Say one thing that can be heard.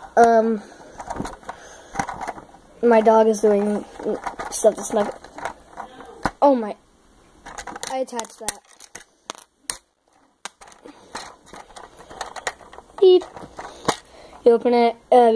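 Plastic toy bricks click and rattle under fingers, close by.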